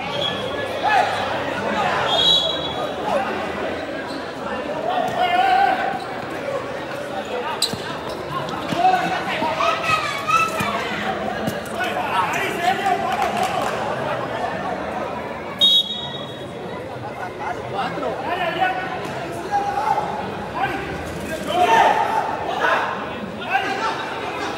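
A ball thumps as players kick it.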